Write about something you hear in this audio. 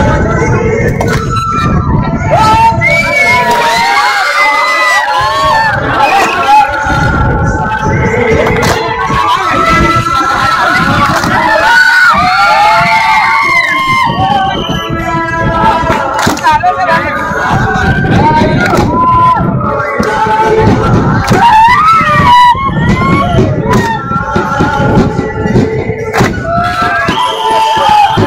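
A crowd of young men sings and chants loudly outdoors.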